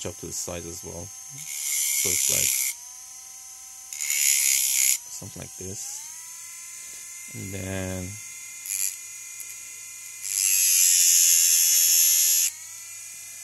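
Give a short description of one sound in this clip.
A small motor whines steadily as a wheel spins.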